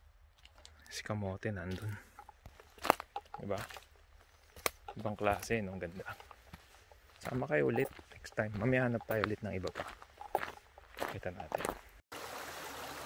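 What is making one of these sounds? A man speaks calmly and close by, outdoors.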